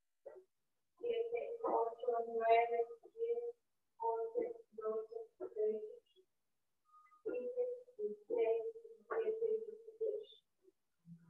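A young woman sings nearby.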